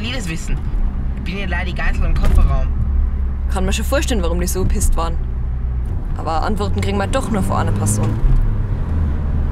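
Young women talk with animation inside a car.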